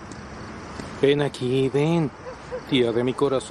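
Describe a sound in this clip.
A middle-aged woman answers briefly, close by.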